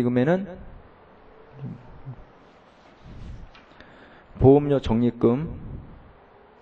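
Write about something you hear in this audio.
A man speaks into a microphone in short, emphatic bursts.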